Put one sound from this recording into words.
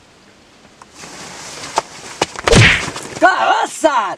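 A man shouts loudly in a struggle.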